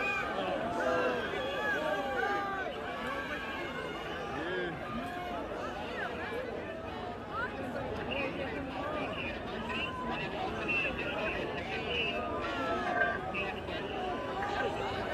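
A crowd of people shout and talk excitedly outdoors.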